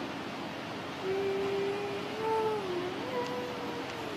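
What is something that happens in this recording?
A young woman laughs softly over an online call.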